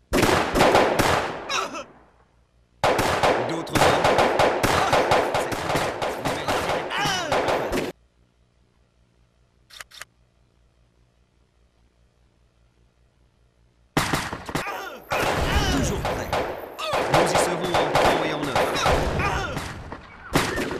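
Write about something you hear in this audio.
Rifles fire in rapid, crackling volleys.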